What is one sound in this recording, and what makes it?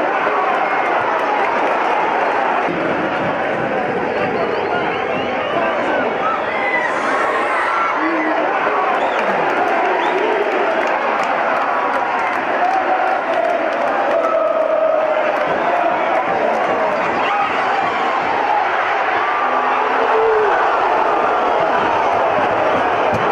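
A large crowd of spectators chants and cheers steadily outdoors.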